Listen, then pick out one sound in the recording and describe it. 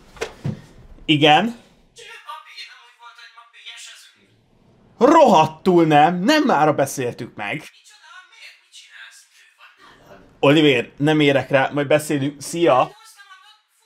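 A young man talks into an intercom handset with animation.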